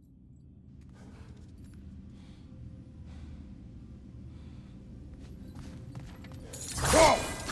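Heavy footsteps thud on soft ground.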